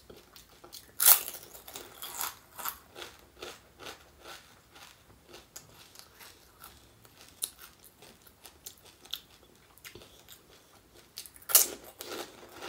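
Crisp hollow shells crunch sharply as a woman bites into them.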